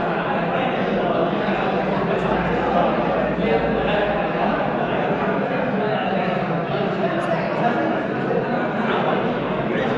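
Several men talk over one another in a large echoing hall.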